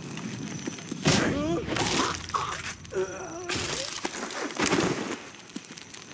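A man grunts and struggles in a brief scuffle.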